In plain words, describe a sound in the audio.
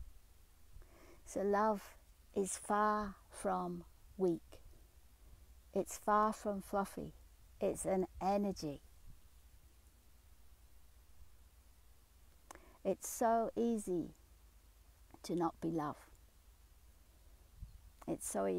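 A middle-aged woman talks calmly and close by, in short bursts with pauses.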